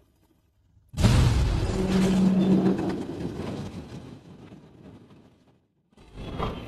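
A large wave of water crashes and roars against a window.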